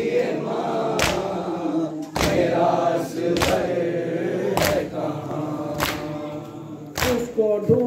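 A crowd of men chants loudly in unison outdoors.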